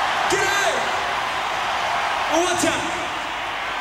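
A man sings forcefully into a microphone over loudspeakers.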